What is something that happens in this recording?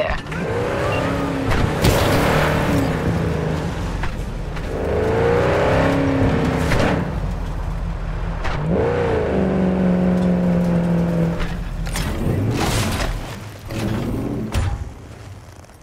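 A car engine revs and roars, rising and falling in pitch.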